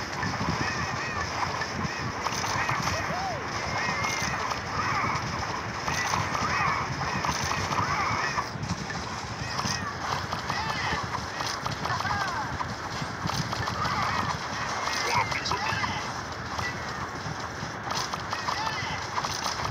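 Game battle effects pop, zap and chime rapidly.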